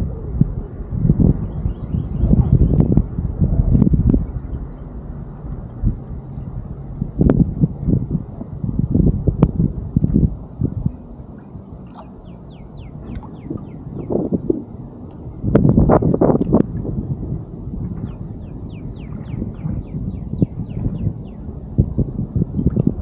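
Wind gusts and buffets the microphone outdoors on open water.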